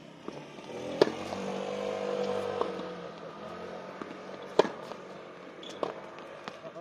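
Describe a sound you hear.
A tennis ball is struck with a racket with sharp pops.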